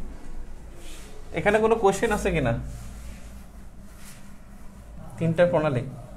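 An eraser wipes across a whiteboard.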